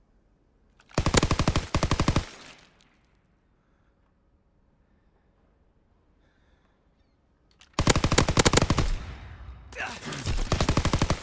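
A submachine gun fires in loud rapid bursts.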